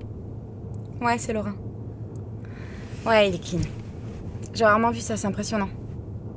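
A young woman talks on a phone, close by.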